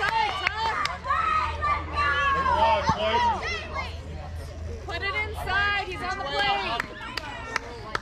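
Young players shout and cheer outdoors across an open field.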